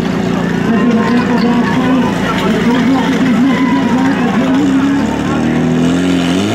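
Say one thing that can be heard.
A crowd of people cheers and shouts loudly.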